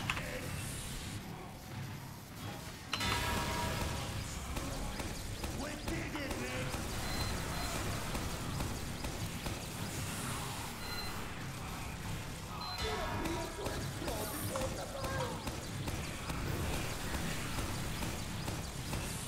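A rotating machine gun fires in a rapid, rattling stream.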